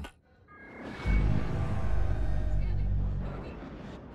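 A spaceship's engines roar with thrust.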